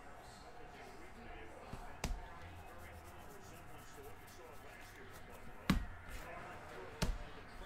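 Trading cards are flicked and shuffled by hand.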